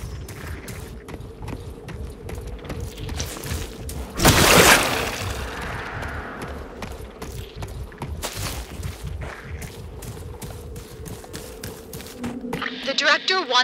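Footsteps crunch quickly over snowy ground.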